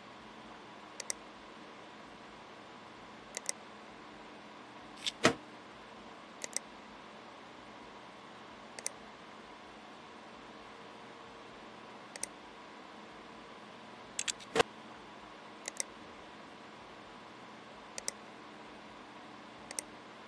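Short, soft clicks sound every few seconds as menus open and close.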